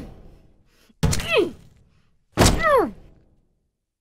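A creature lets out harsh, falling shrieks.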